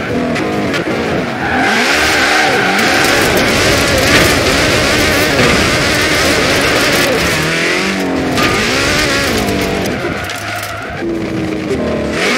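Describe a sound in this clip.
Tyres screech and skid through tight bends.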